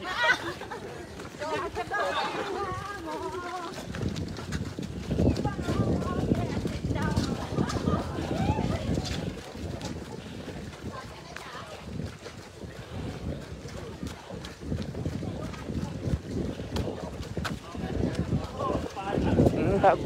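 Many footsteps patter on pavement as a group jogs past.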